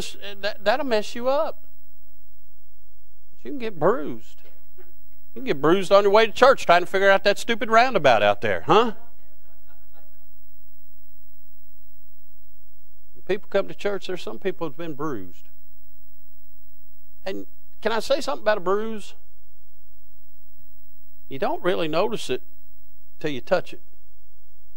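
A man preaches with animation through a microphone, pausing between phrases.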